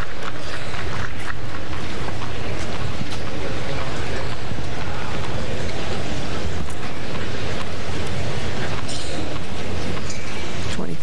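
A crowd murmurs in a large arena.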